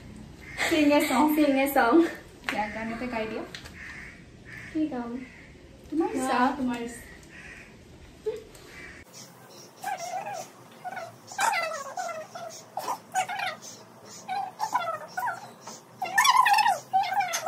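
Young women talk and laugh close by.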